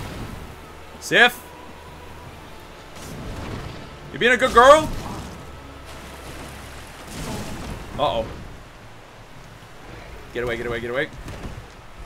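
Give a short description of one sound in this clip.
A huge wolf snarls and yelps in short cries.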